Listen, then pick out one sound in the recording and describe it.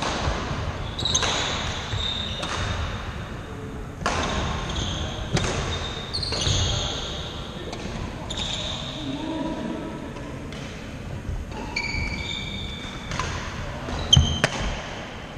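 Shoes squeak sharply on a wooden floor.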